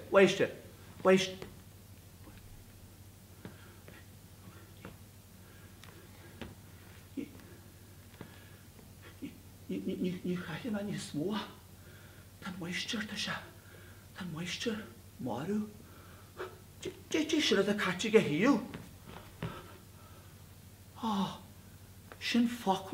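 An elderly man speaks with animation in an echoing hall.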